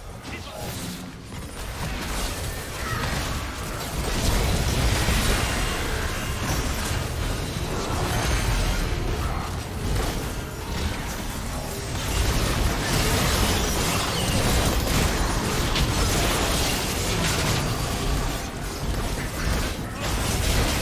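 Game spell effects crackle and boom in a busy battle.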